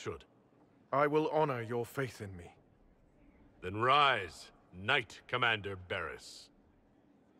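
A man speaks calmly and clearly, heard close up.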